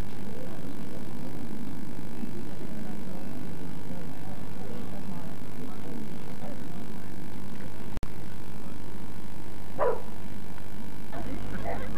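A crowd of people murmurs and chatters in the distance outdoors.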